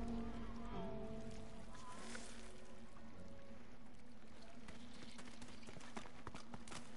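Footsteps tread on stone ground.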